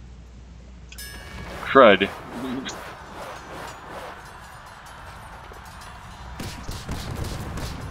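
Magical game effects whoosh and sparkle as cards clash.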